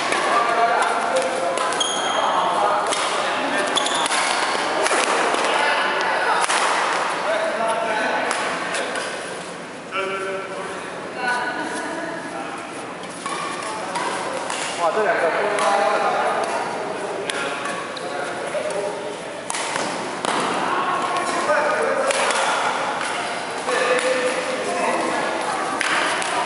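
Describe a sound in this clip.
Shuttlecocks are hit with rackets in a large echoing hall.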